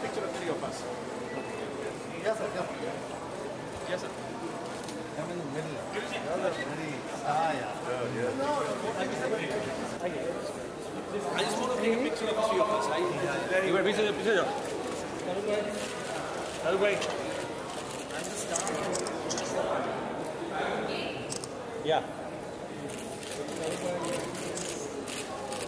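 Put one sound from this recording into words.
A crowd of men and women chatters loudly close by in an echoing room.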